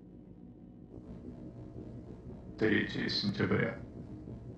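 A large beast growls low and then lets out a loud, harsh roar.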